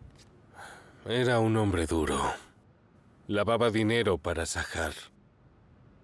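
A middle-aged man speaks in a low, gruff voice, close by.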